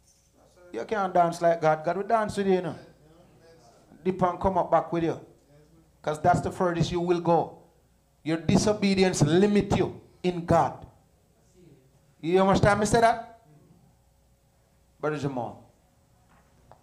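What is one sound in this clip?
A man preaches through a microphone in bursts of loud, animated speech, with pauses between phrases.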